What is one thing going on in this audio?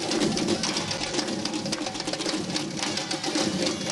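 An audience claps along.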